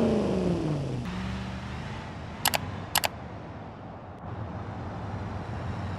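A van engine hums steadily in the distance.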